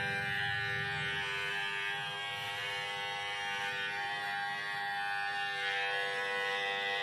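An electric hair clipper buzzes steadily close by.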